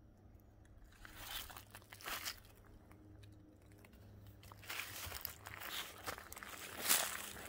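Footsteps crunch through dry leaves outdoors.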